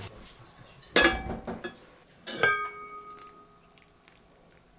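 A heavy metal pot lid clanks and rings.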